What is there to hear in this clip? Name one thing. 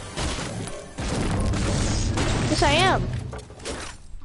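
A treasure chest opens with a shimmering chime.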